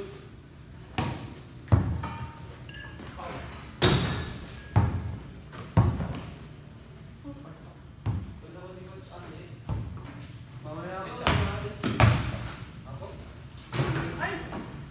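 A basketball bounces on a hard floor with a booming echo.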